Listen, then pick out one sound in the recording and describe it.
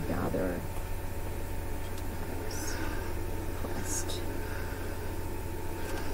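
An iron slides over fabric.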